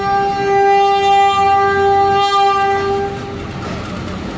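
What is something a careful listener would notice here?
A train horn blares loudly and steadily, then stops.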